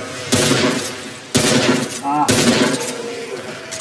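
A shotgun fires loudly, with echoing blasts.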